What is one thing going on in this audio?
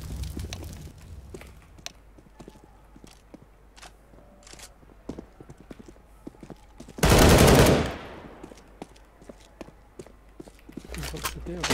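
Footsteps tap quickly on hard ground.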